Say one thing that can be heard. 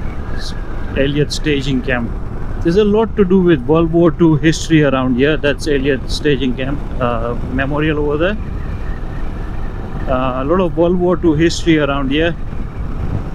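A man speaks calmly and close to a helmet microphone.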